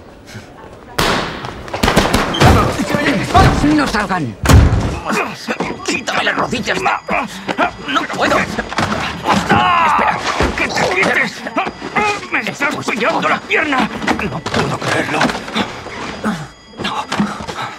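Men scuffle and grunt as bodies thud against shelves.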